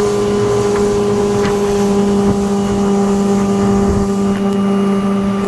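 Water churns and splashes in a boat's wake.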